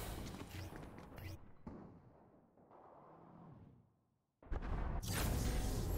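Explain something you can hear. Footsteps patter quickly on a hard floor as a game character runs.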